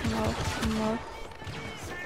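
A blaster rifle fires in sharp bursts.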